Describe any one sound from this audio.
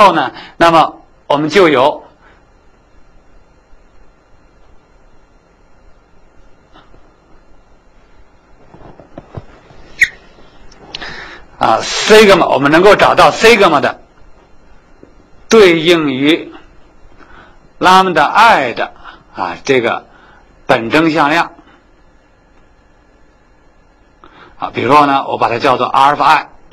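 A man lectures calmly, close by, with pauses.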